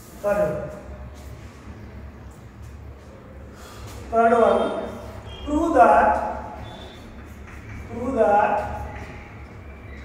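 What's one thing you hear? A man speaks slowly and clearly.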